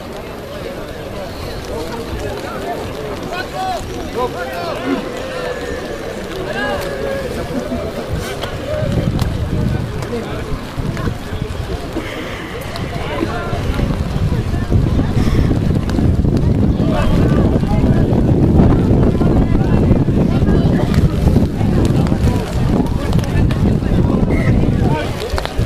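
Men and women in a crowd talk and call out outdoors at a distance.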